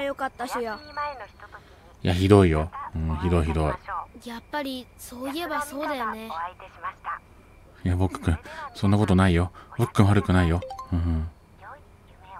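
A young boy talks with animation, close by.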